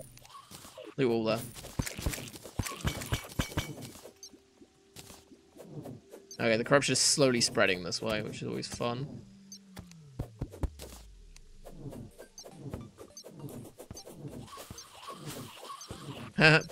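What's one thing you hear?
Short game sound effects click and tap repeatedly.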